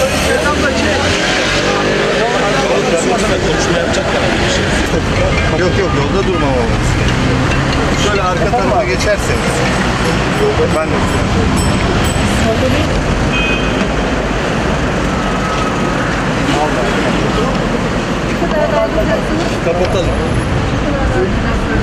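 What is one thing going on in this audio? Many voices of a crowd chatter and call outdoors.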